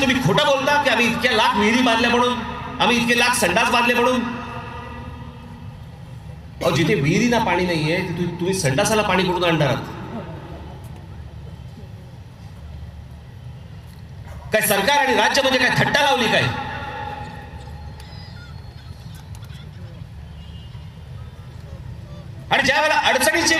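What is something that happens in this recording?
A man speaks forcefully through loudspeakers, echoing outdoors in bursts.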